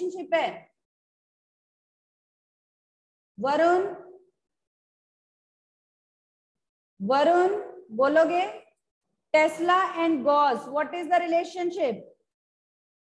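A young woman speaks calmly into a microphone, in short bursts with pauses.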